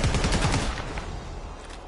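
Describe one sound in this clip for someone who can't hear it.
A rifle fires a rapid burst close by.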